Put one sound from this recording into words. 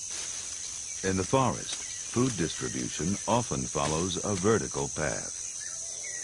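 A toucan croaks loudly.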